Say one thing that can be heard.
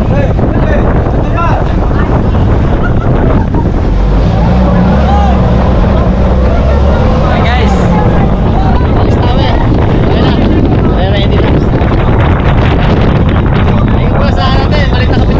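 A boat engine rumbles steadily close by.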